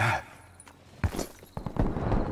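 Someone lands heavily on hard ground with a thud.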